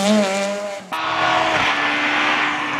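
A distant rally car engine drones steadily.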